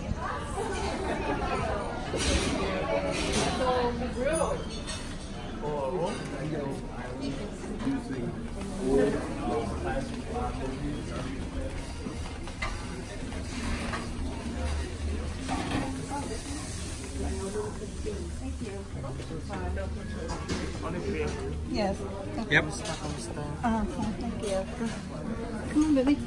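Several people talk at once nearby, in a room full of chatter.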